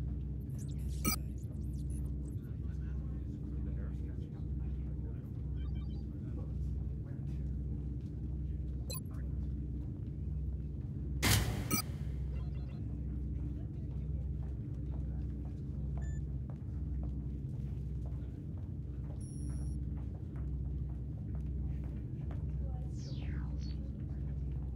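Short electronic clicks sound now and then as menu items scroll.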